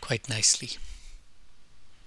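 A cloth rubs over metal.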